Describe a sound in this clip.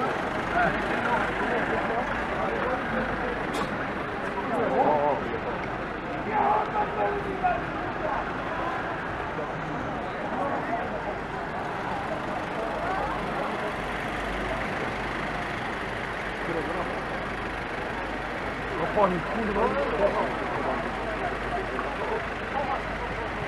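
A convoy of vans drives past with engines humming.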